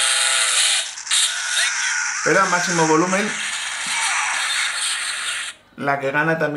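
Game music and sound effects play from a handheld console's small speaker.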